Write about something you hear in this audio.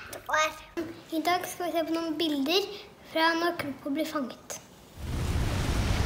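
A young boy speaks calmly close to the microphone.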